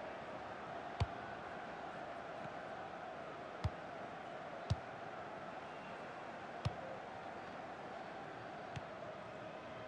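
A football is kicked with sharp thumps now and then.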